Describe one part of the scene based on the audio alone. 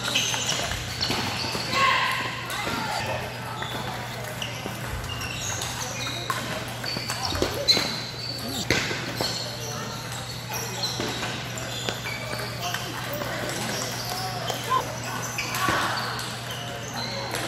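A table tennis ball clicks back and forth on paddles and a table.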